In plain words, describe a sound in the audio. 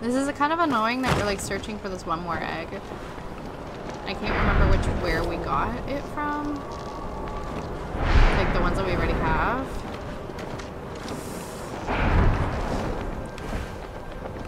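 Wind rushes past in loud gusts.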